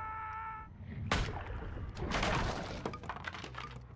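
Wood cracks and splinters under heavy blows.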